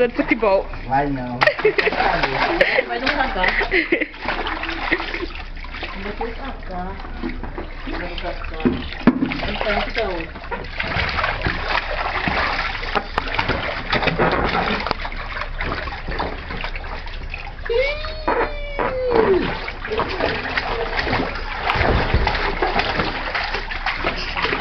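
Water splashes in a small pool.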